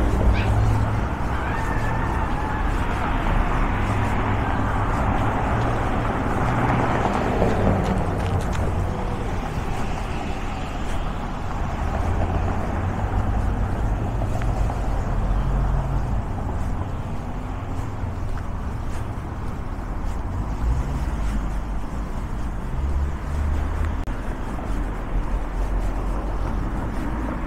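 Cars drive past on a nearby street, rising and fading.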